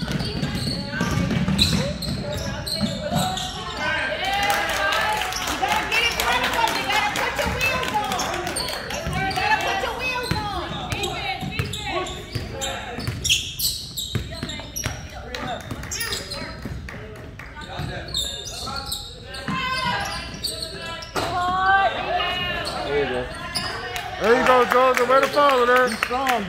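Sneakers squeak on the wooden floor.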